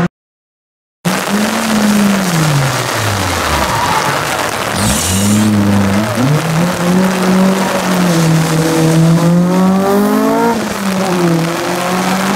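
Another rally car engine revs hard, rising and falling in pitch as it changes gear.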